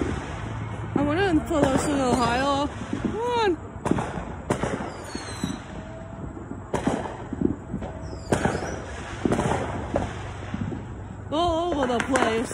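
Fireworks whistle as they shoot up into the sky.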